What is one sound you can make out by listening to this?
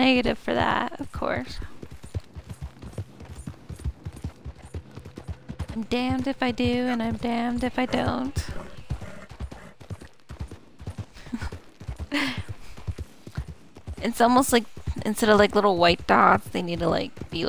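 A horse's hooves clop steadily on a dirt path.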